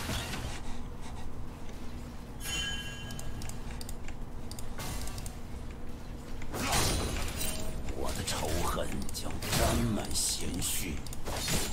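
Game weapons clash with sharp hits.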